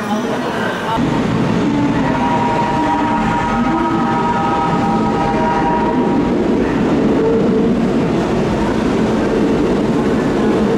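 A train rumbles steadily closer through an echoing underground tunnel.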